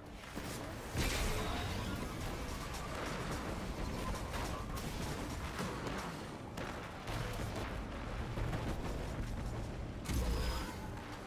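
A hover bike engine roars and whooshes.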